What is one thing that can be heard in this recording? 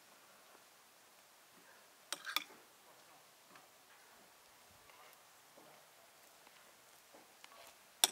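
A knife scrapes a spread across bread.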